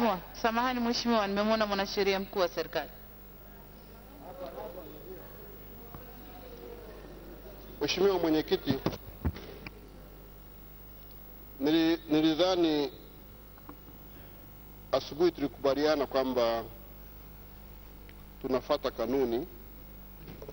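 A man speaks with animation into a microphone, in bursts with pauses.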